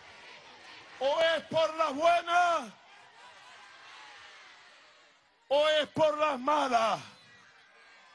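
A large crowd chants loudly in unison in short bursts.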